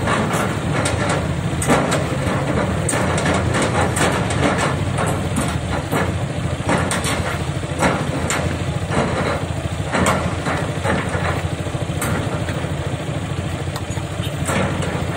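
A diesel engine of an excavator rumbles steadily nearby.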